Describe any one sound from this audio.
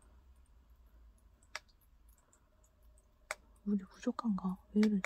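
Water drips into a shallow pool of water.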